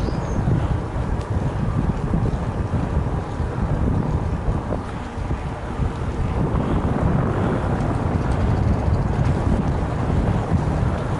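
Bicycle tyres roll over asphalt.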